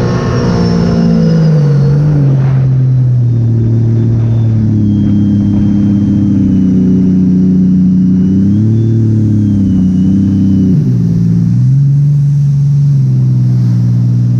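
Water splashes and hisses against a speeding hull.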